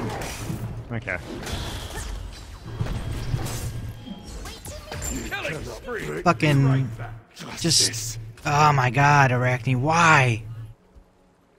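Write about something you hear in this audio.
Magic blasts whoosh and crackle in a fight.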